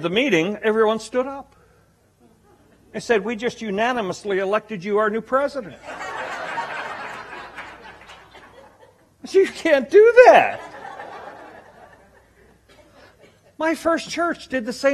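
A middle-aged man speaks with animation through a microphone in a large echoing room.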